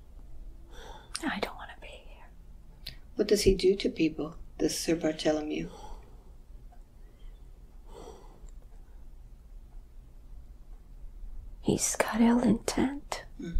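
An elderly woman speaks weakly and haltingly close by.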